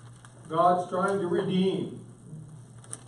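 An elderly man speaks aloud, close by, in a quiet room.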